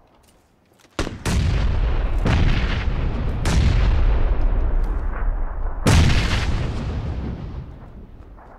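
Loud gunshots ring out, each followed by a long rumbling echo.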